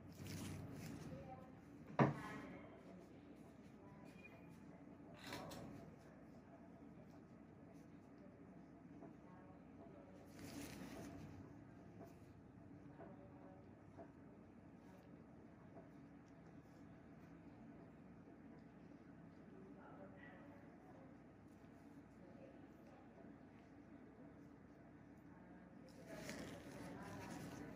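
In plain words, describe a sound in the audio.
Rubber gloves rub and rustle close by.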